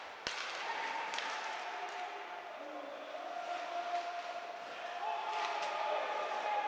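A hockey stick smacks a puck with sharp cracks.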